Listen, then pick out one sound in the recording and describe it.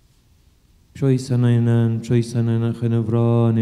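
A man chants loudly through a microphone in a large echoing hall.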